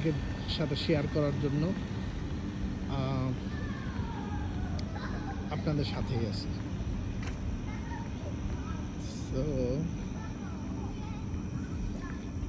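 Children shout and call out in the distance.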